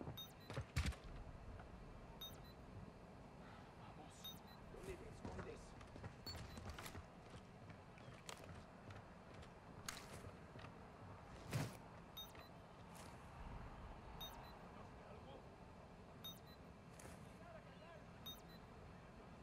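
A radar device beeps softly every two seconds.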